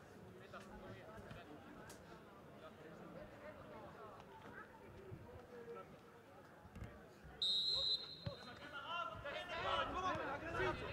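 Young male football players call out in the distance outdoors.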